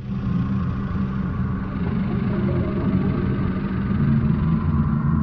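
Low, droning video game music plays steadily.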